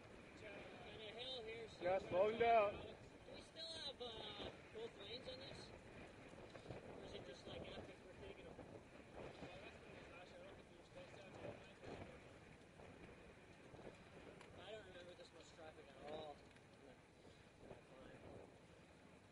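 Nearby cyclists chat with each other while riding.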